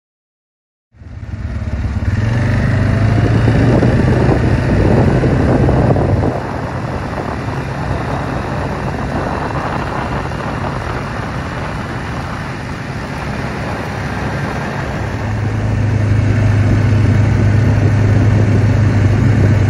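A vehicle engine rumbles steadily as it drives.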